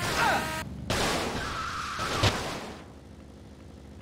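A motorbike crashes with a thud.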